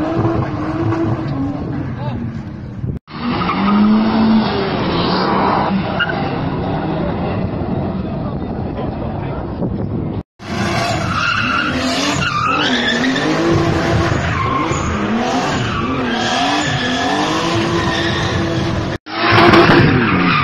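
A car engine revs hard, rising and falling.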